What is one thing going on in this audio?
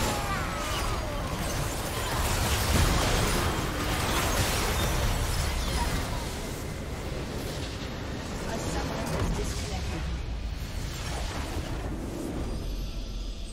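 Game spell effects and explosions crash and whoosh in a fast fight.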